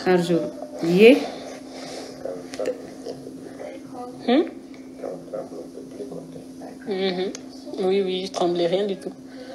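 A woman speaks calmly and earnestly into a nearby microphone.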